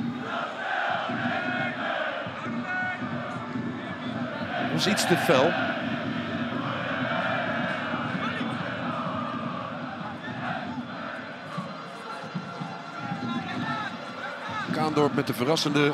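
A large crowd cheers and chants in an open stadium.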